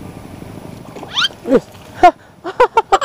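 Water splashes as a hooked fish thrashes at the surface.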